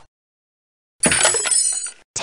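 Wooden crates crash and break apart.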